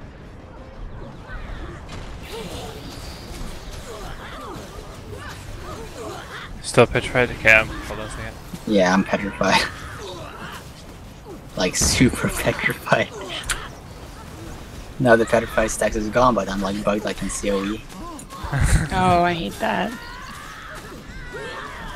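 Magic blasts and weapon strikes burst in a fast fight.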